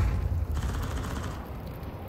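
Fire from an incendiary grenade crackles and roars.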